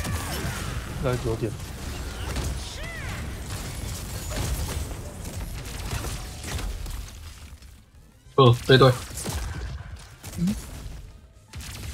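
Game combat hits thud and clash.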